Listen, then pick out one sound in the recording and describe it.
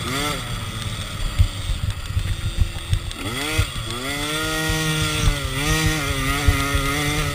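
The dirt bike's suspension thuds and knocks over rough ground.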